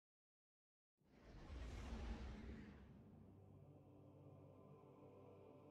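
A spaceship engine whooshes and rumbles.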